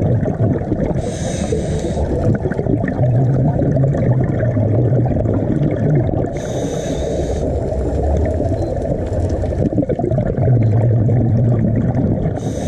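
Scuba divers breathe out through regulators in rushing bursts of bubbles.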